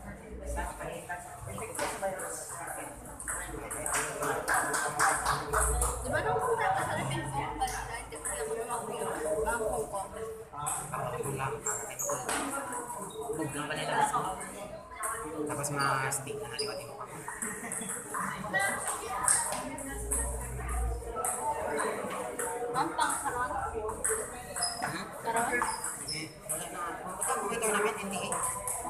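A ping-pong ball clicks back and forth on paddles and a table.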